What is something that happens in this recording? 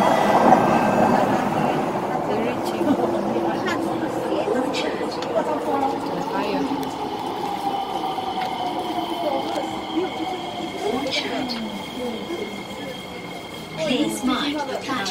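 A train rumbles and hums steadily.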